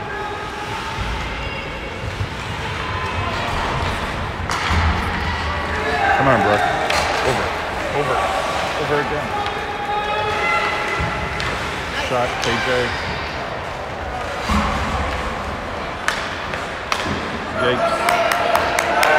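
Spectators chatter and shout nearby.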